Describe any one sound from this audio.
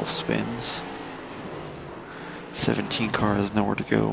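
A race car scrapes and crashes into a wall.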